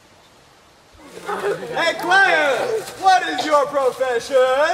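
A group of teenagers shout and chatter excitedly close by.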